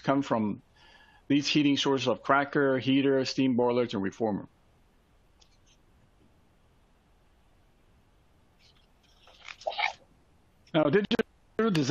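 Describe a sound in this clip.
A man speaks calmly through an online call microphone, with pauses.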